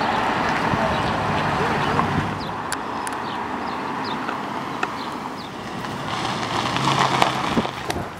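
A car engine rumbles as it drives slowly past.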